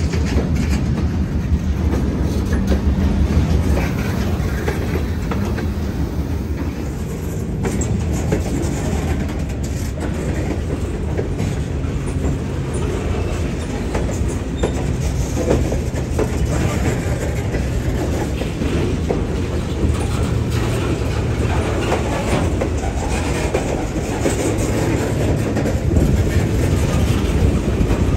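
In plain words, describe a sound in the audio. Steel wheels clatter and squeal on the rails.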